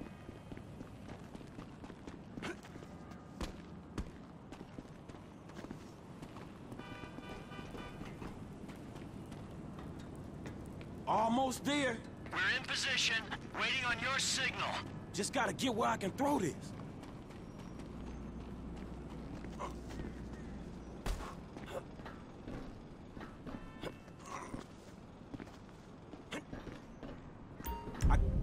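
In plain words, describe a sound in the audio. Footsteps run quickly over concrete and gravel.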